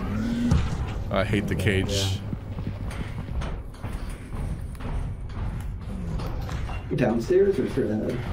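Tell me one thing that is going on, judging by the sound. Footsteps thud slowly on a hard floor.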